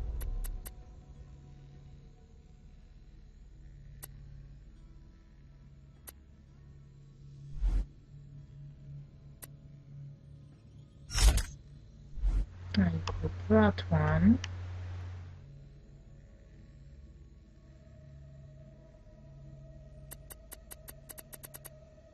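Short electronic clicks tick as menu items are selected.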